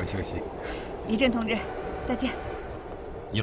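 A woman speaks cheerfully up close.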